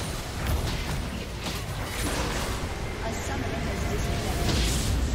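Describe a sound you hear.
Game spells crackle and burst during a fight.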